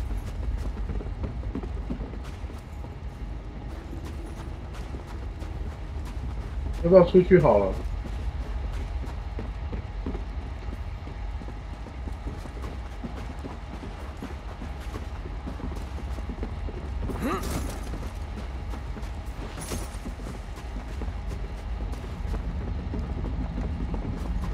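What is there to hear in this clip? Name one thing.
Footsteps crunch and thud quickly.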